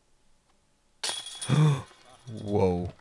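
A flying disc crashes into metal basket chains with a ringing jangle.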